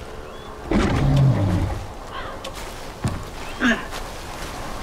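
A heavy club thuds against a large animal.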